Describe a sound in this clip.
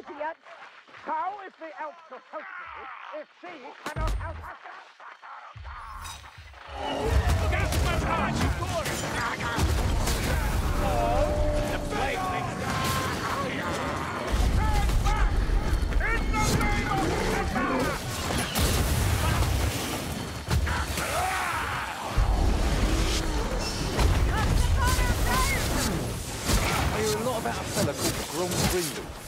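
Blades clash and strike repeatedly in a fierce melee.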